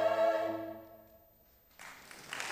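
A choir holds a final sung chord that fades away in a large echoing hall.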